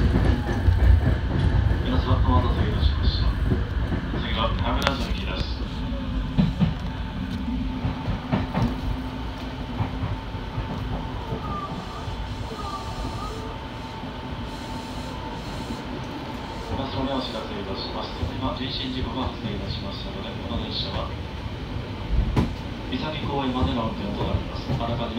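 A train rumbles steadily along the tracks from inside the cab.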